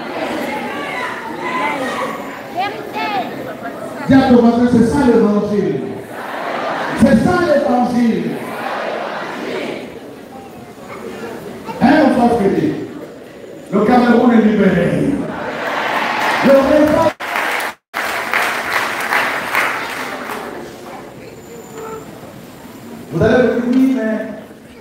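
A large crowd sings and chants loudly in an echoing hall.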